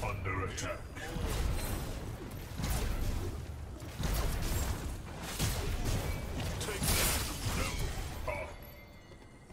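Rapid energy blasts crackle and boom in a fight.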